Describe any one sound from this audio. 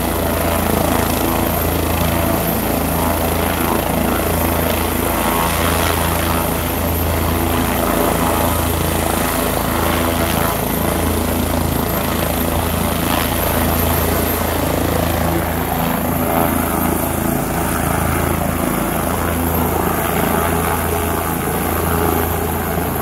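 A helicopter engine idles nearby with a steady whine and low hum.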